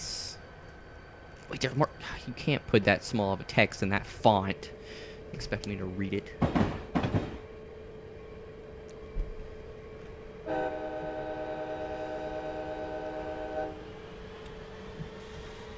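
A train rumbles along the rails.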